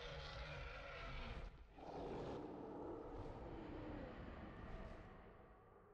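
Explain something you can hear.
Large wings beat heavily through the air.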